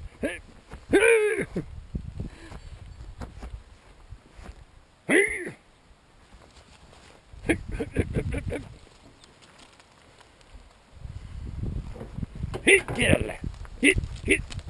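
A young goat bleats close by.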